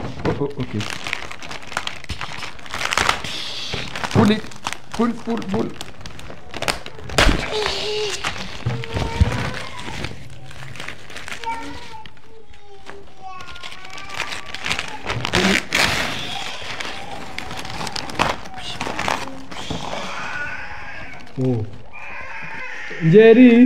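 Paper crinkles and tears.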